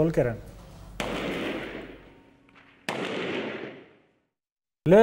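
Gunshots crack and echo between buildings.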